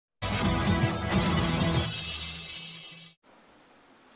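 A loud musical jingle plays.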